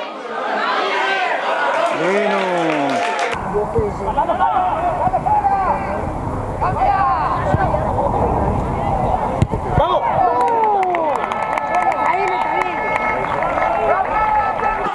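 Men shout loudly across an open outdoor pitch.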